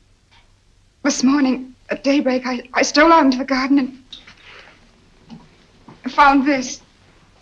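A woman speaks with concern nearby.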